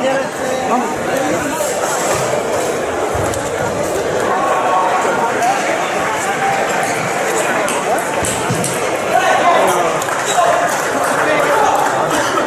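Table tennis balls click against paddles and tables.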